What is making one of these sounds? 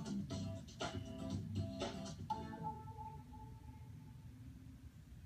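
Upbeat music plays briefly from a television speaker and ends with a chime.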